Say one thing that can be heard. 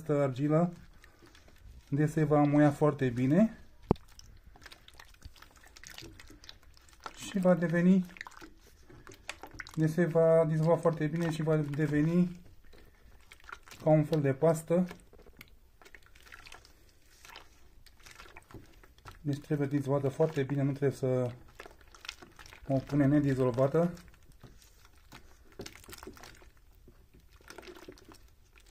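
A spoon stirs thick liquid in a metal pot, scraping and sloshing.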